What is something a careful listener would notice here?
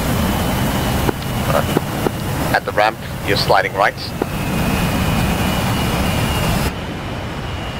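A jet engine roars loudly close by.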